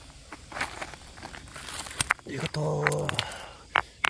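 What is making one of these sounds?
A stone scrapes against pebbles as a hand lifts it.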